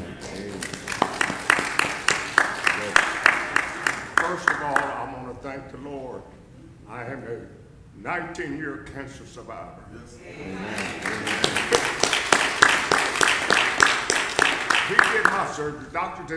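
A crowd claps in a steady rhythm.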